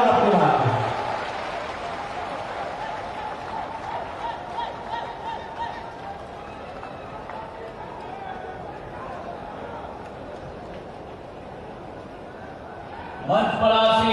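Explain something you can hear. A crowd cheers and shouts in the open air.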